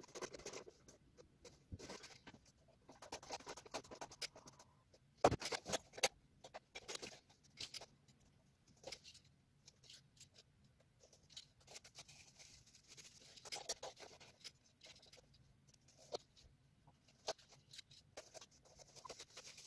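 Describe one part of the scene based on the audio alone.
Small plastic parts click and clatter up close.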